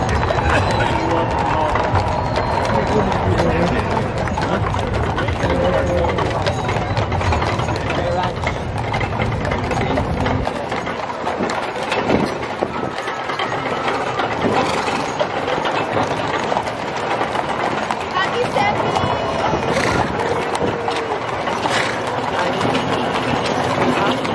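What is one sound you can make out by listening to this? Horses' hooves clop on pavement.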